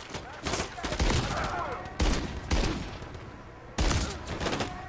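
A rifle fires single loud shots that echo.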